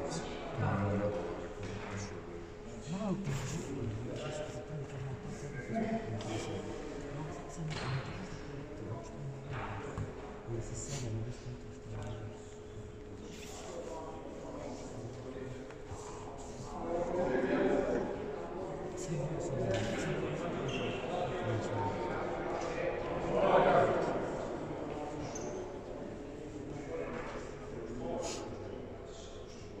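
Players' voices and shouts echo from across a large hall.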